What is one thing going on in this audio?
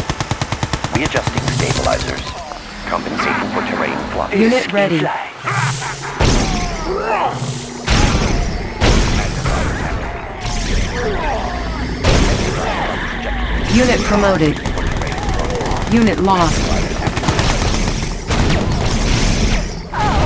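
Weapons fire in rapid bursts during a battle.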